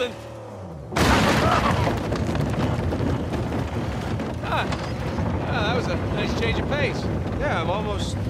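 Tyres rattle and thump over wooden planks.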